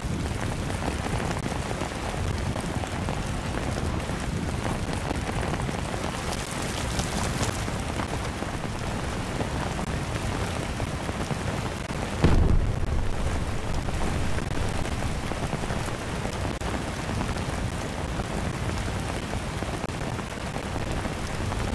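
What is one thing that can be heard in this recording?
Rain falls steadily outdoors.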